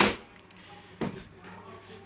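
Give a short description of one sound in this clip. Footsteps thud softly on a carpeted floor.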